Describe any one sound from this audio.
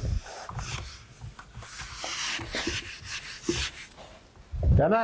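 An eraser rubs on a whiteboard.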